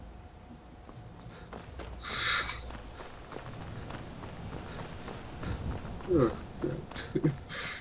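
Footsteps crunch over stony ground.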